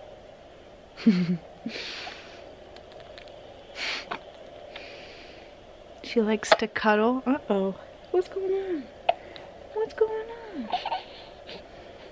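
A woman talks softly and playfully close by.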